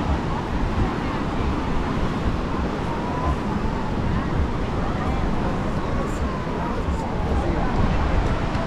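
Waves wash onto the shore nearby.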